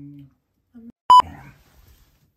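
An electronic beep sounds briefly.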